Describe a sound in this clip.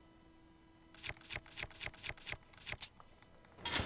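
Menu selections click in quick succession.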